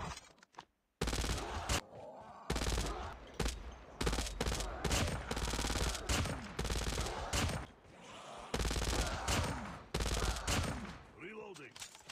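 Gunfire rattles in rapid, loud bursts.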